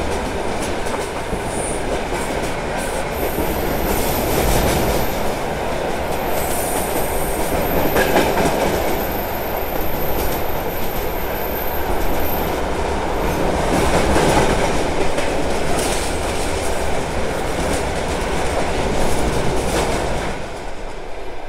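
A freight train rushes past close by with a loud, steady rumble.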